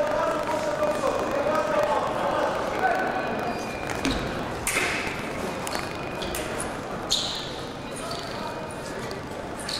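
Fencers' shoes squeak and stamp on the floor.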